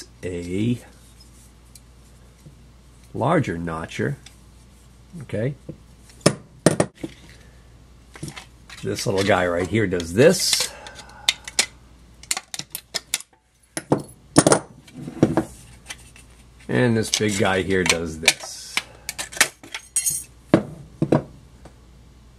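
Metal pliers click and clack as they are handled.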